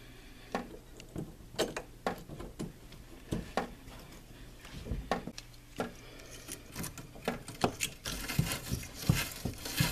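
Small metal fittings click and knock as they are pushed onto a pipe.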